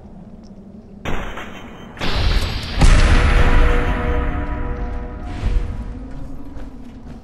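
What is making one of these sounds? A loud blast booms and rumbles away.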